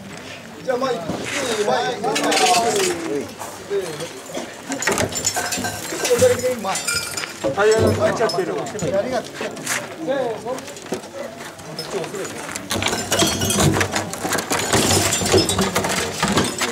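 A crowd of adult men talk and call out close by outdoors.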